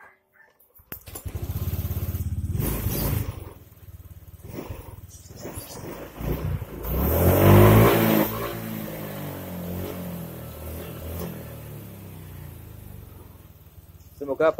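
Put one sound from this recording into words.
A scooter engine starts and idles.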